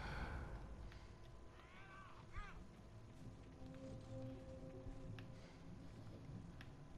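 Footsteps tread softly on a wooden floor.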